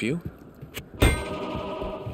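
A game menu opens with a sharp click.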